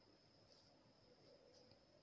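Scissors snip through thread.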